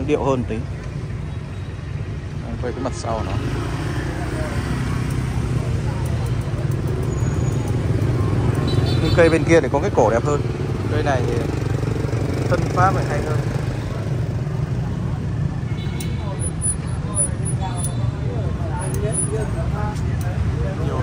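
Motorbike engines rumble steadily nearby outdoors.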